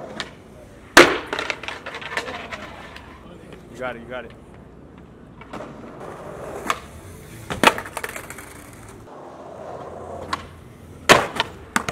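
A skateboard slams down onto stone with a loud clack.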